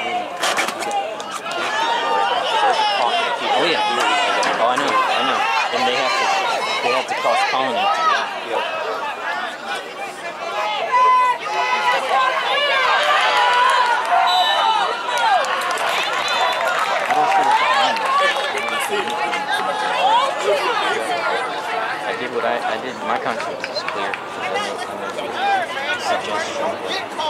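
A crowd of spectators nearby shouts and cheers.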